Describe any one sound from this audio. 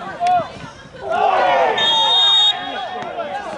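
Young men on a sideline shout and cheer loudly outdoors.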